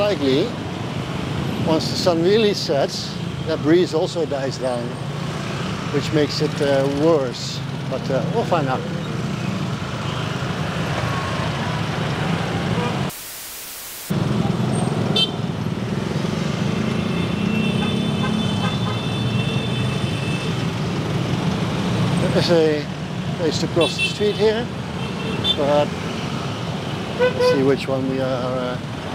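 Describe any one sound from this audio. Many motor scooter engines hum in dense traffic.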